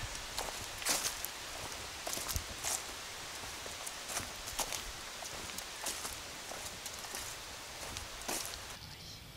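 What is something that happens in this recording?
Footsteps crunch on dry leaves along a path.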